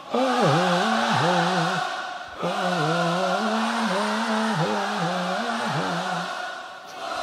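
A man sings along loudly close by.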